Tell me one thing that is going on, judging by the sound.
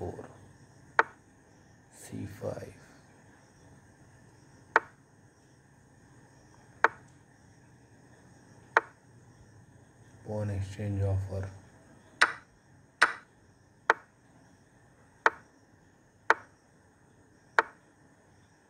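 A digital chess board clicks as each piece is moved.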